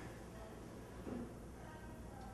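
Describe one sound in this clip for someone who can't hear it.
A spoon clinks against a cup.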